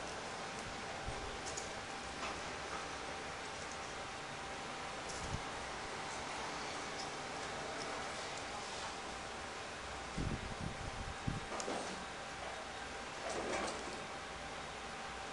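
Paper pieces rustle and click softly as they are pressed into place.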